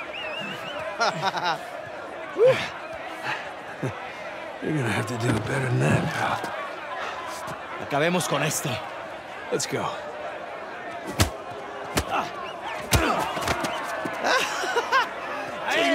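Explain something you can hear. A crowd of men shouts and jeers.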